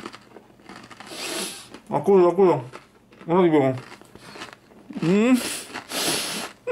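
A man breathes in deeply through his nose.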